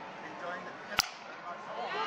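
A cricket bat sharply strikes a ball.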